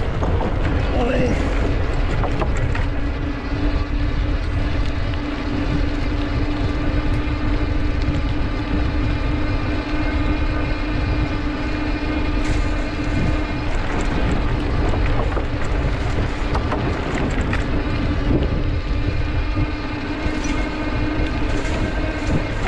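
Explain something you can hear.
Wheels rattle over wooden boards.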